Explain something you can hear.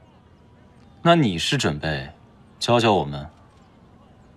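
A young man speaks calmly in reply.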